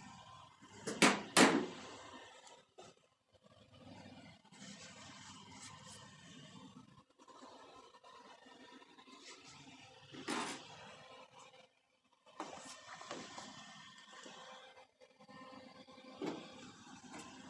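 A hand knocks and thumps on a thin metal panel.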